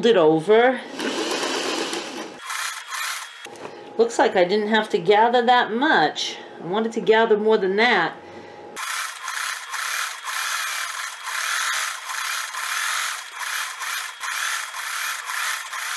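A sewing machine whirs as it stitches fabric.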